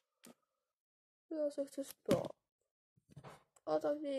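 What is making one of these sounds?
A small plastic toy taps against a cardboard floor.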